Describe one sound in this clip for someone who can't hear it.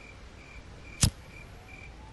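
A lighter clicks once.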